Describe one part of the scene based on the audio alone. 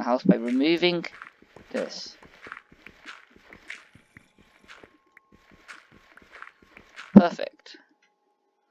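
Dirt crunches with quick, repeated digging strokes.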